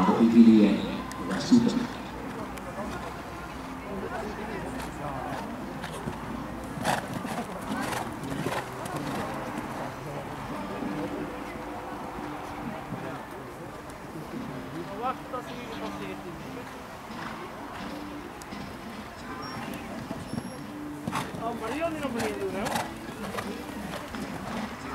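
A horse's hooves thud on soft sand as it canters.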